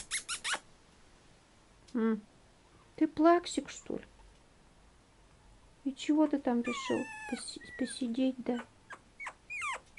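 A puppy's paws patter on a wooden tray.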